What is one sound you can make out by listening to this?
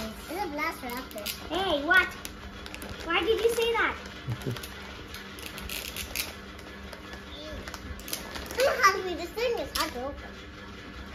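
Young children talk and sing in high voices close by.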